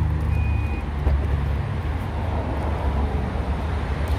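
A car's tailgate swings open.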